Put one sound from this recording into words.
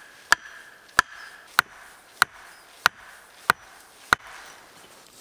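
A hammer strikes wood in sharp, even blows.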